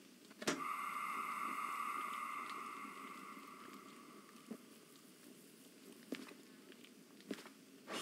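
A steam locomotive rumbles and hisses steadily.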